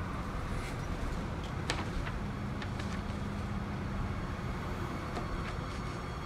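Paper pages rustle as a book is leafed through.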